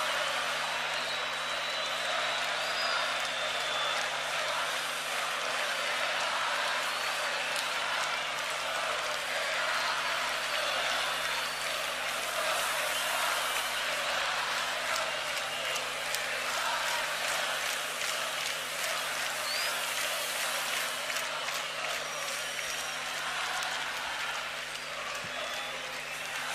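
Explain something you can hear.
A large stadium crowd cheers and roars outdoors.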